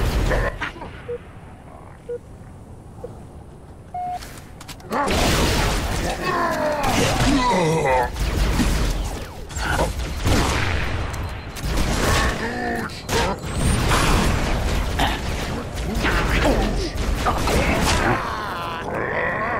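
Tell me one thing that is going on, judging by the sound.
Rifle shots fire in quick bursts.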